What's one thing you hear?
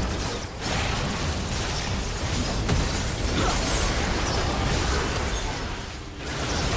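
Spell effects whoosh and crackle in a fast game battle.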